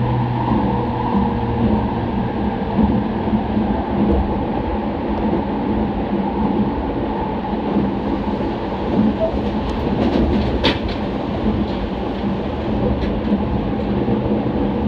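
An electric commuter train hums and rumbles at speed, heard from inside the carriage.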